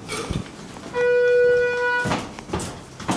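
An elevator chime rings with a steady beep.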